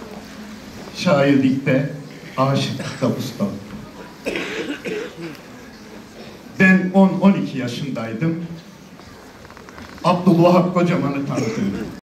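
A man speaks with emphasis into a microphone over loudspeakers in a large hall.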